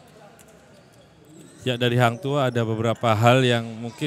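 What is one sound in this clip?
Players slap hands in quick high fives.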